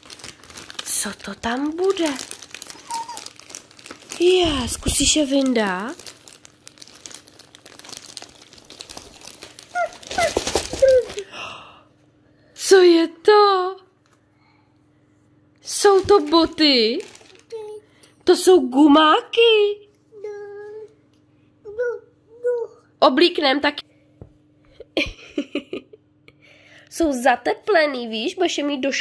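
An adult speaks warmly and with animation close by.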